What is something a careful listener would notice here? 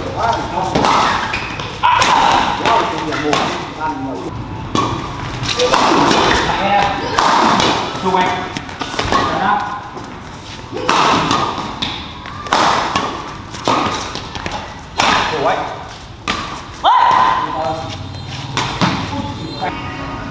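Rackets smack a shuttlecock back and forth in an echoing hall.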